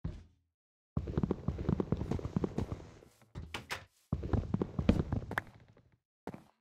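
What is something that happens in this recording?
Wooden blocks are chopped with repeated knocks.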